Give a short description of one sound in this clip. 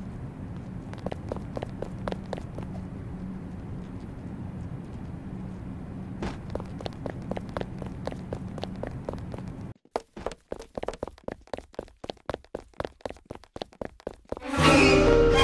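Quick running footsteps patter on a hard floor.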